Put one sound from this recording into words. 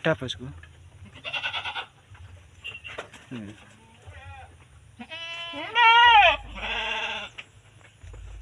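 Goats bleat loudly nearby.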